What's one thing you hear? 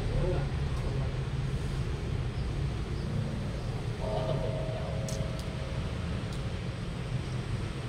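A fishing reel clicks as a line is wound in.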